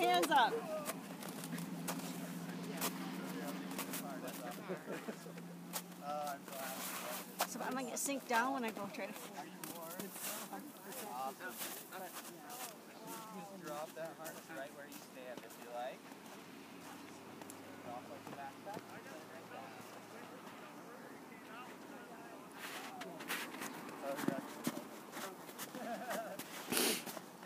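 A woman talks calmly close by, outdoors.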